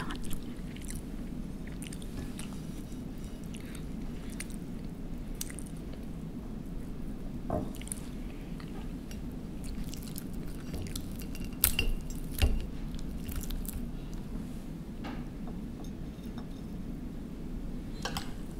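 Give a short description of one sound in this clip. A fork and knife clink and scrape on a plate.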